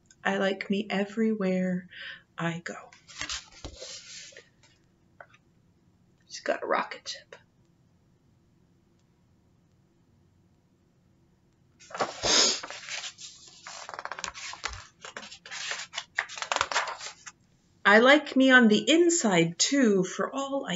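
A woman reads aloud calmly, close to a microphone.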